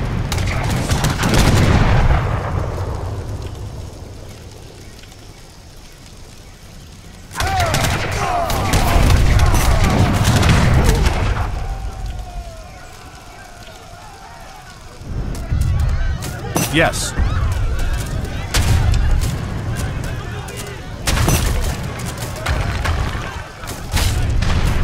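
Flames crackle as a building burns.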